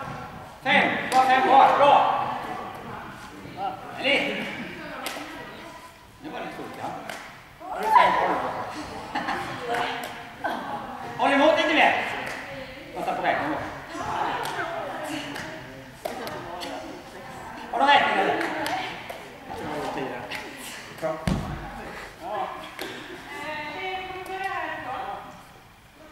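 A woman speaks with animation in an echoing hall.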